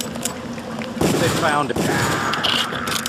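A gun fires a loud shot.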